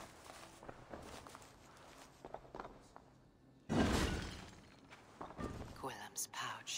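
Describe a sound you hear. Footsteps thud softly.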